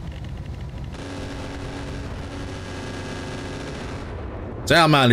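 A machine gun fires a rapid, steady burst.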